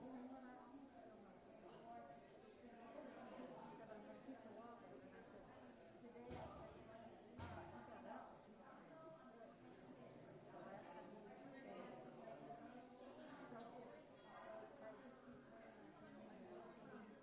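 An elderly woman speaks calmly through a microphone in an echoing room.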